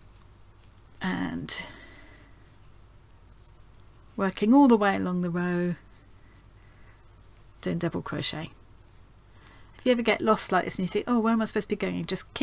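A woman talks calmly into a microphone, in short bursts with pauses.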